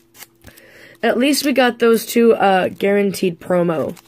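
A foil wrapper crinkles in someone's hands.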